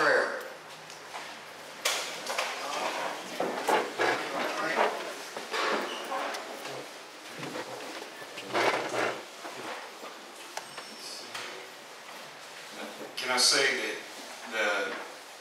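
A middle-aged man speaks into a microphone over loudspeakers in an echoing room.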